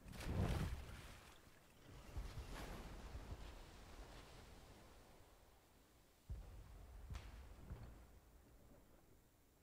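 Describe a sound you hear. Wind blows steadily across open water.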